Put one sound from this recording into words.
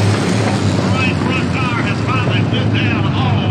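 Spectators talk nearby in a crowd.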